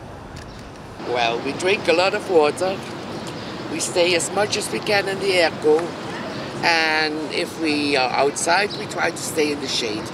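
An elderly woman speaks with animation close to a microphone.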